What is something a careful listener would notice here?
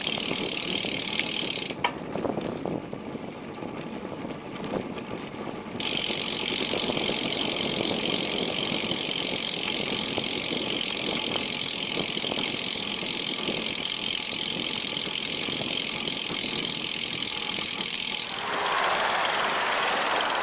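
Wind rushes steadily past while riding along outdoors.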